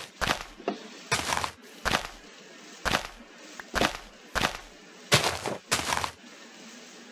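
Leaves rustle and crunch in short, repeated bursts as they are broken.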